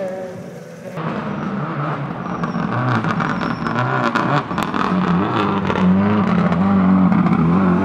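A second rally car engine snarls up close as it passes.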